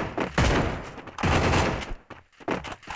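Gunfire bursts loudly in quick rounds.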